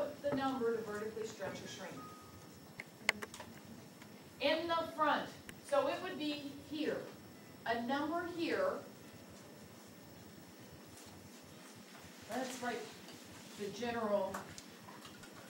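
A woman speaks clearly.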